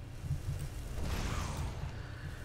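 A fire spell bursts into roaring, hissing flames.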